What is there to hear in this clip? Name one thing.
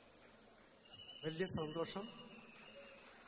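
A man speaks loudly through a microphone in a large hall.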